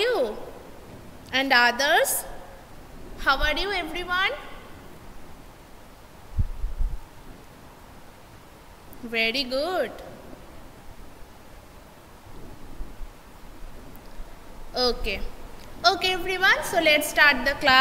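A young woman speaks clearly into a microphone in short phrases, with pauses between.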